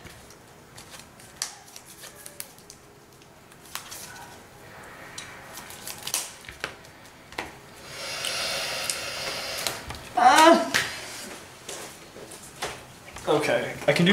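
Playing cards shuffle and slap softly on a table.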